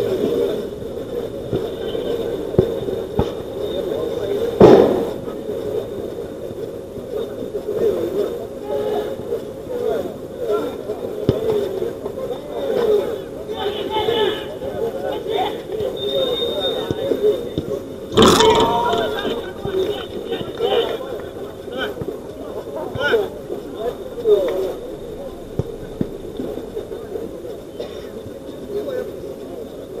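Men call out to each other across an outdoor pitch.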